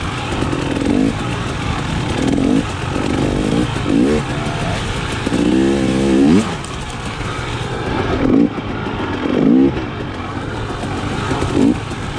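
A motorbike engine revs up and down close by.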